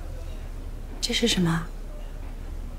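A young woman asks a short question calmly.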